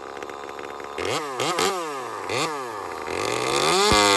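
A chainsaw revs up in short bursts.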